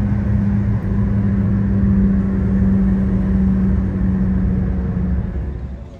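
Tyres roar on a smooth road.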